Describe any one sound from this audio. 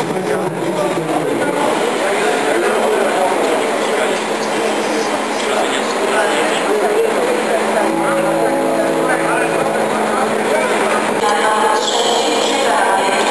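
A train rumbles slowly into an echoing station hall.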